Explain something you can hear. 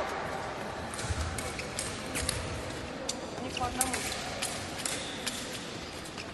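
Blades clink together.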